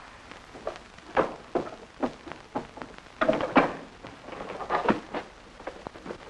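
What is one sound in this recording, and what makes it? Wooden furniture knocks and bumps close by.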